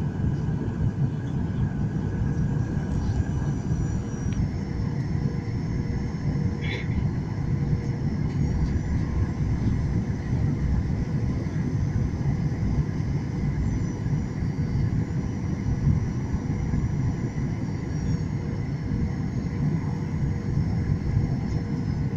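A jet engine roars steadily with a deep rumble inside an airplane cabin.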